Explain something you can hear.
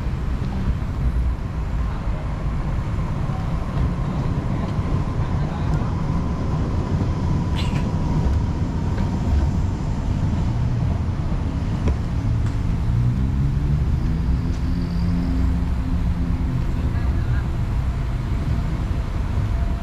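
Wind buffets the microphone steadily.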